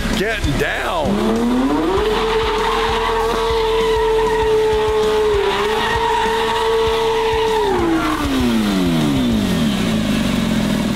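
A car engine revs hard, holds a high roar, then winds down.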